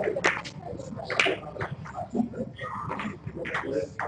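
Snooker balls clack sharply as the cue ball breaks the pack.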